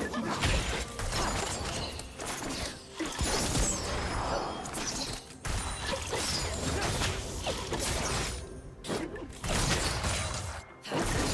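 Spell effects crackle and clash in a game battle.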